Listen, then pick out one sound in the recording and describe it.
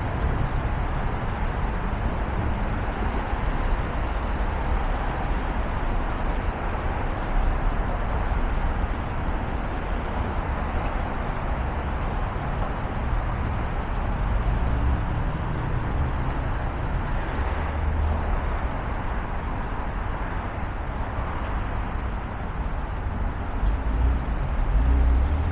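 Traffic hums steadily along a busy street nearby.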